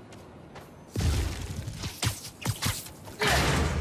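A web line zips and snaps several times.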